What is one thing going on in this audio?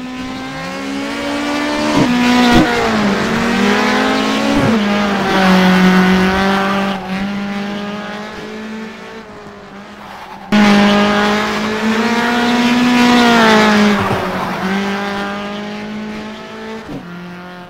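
A racing car engine revs high and shifts gears as the car speeds around bends.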